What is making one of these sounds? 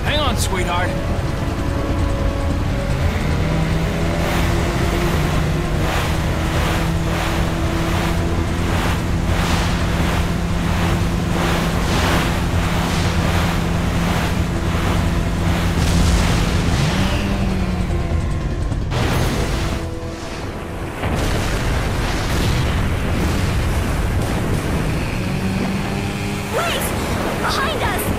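A jet ski engine drones steadily.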